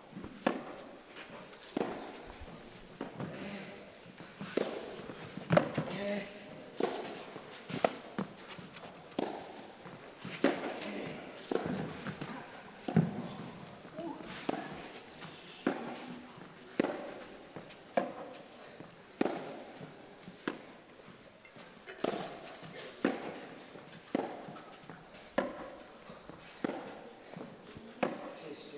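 Tennis balls are struck by rackets in a steady back-and-forth rally, echoing in a large hall.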